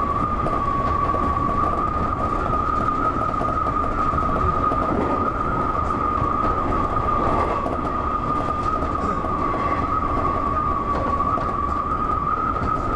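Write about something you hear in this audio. A train's motor whines with a steady high hum.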